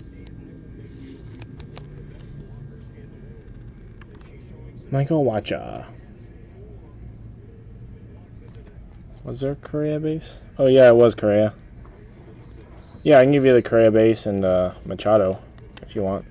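Stiff cards rustle and tap softly as they are handled and shuffled.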